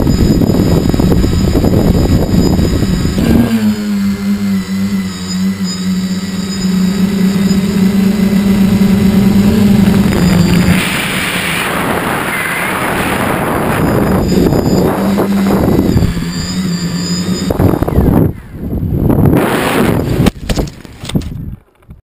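Wind buffets the microphone in gusts.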